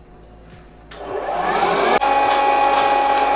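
A popcorn machine hums steadily.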